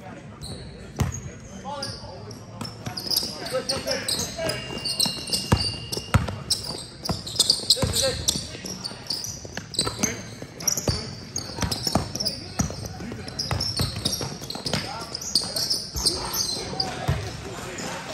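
A basketball bounces on a hard court in an echoing gym.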